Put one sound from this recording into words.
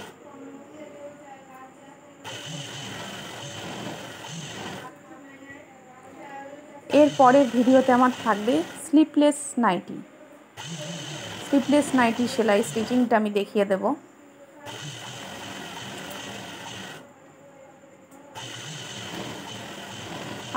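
A sewing machine motor whirs in short runs.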